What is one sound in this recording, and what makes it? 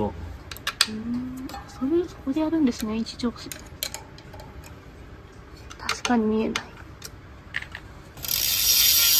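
Metal tools click and tap against a bicycle brake.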